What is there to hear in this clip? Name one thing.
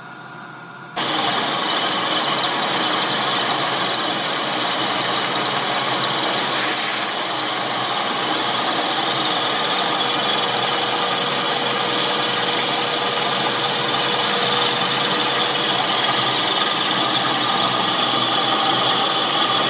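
A milling machine whirs as its cutter grinds into metal.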